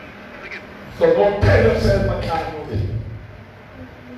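An elderly man preaches loudly and with animation through a microphone and loudspeakers.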